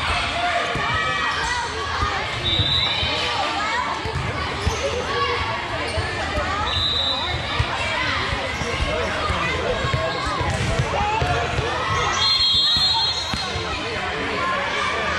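Many young girls shout and chatter in a large echoing hall.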